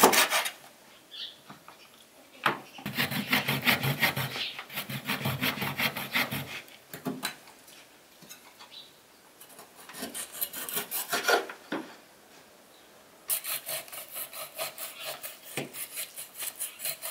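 A knife slices through raw beef on a wooden board.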